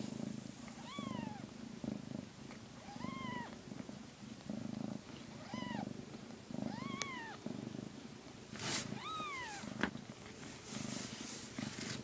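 A cat purrs steadily and close.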